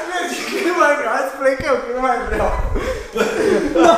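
Several men laugh.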